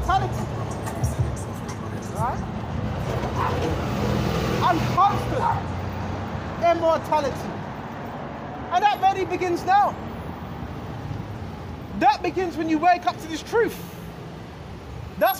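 A man sings loudly in short, gliding phrases close by.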